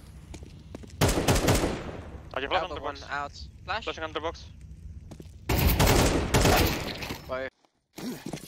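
Rifle shots crack in loud bursts.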